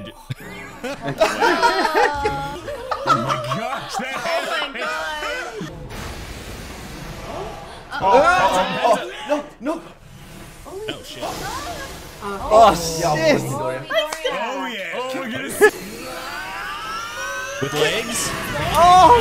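Several young men and women laugh and exclaim excitedly through microphones.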